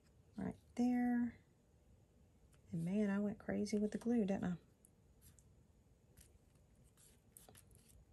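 Paper rustles softly as hands press and smooth it.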